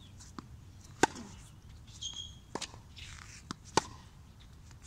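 A tennis racket strikes a ball with sharp pops.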